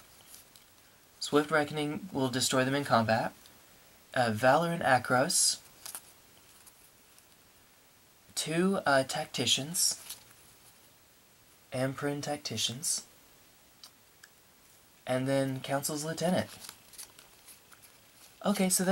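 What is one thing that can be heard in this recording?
Playing cards rustle and slide softly as hands sort them.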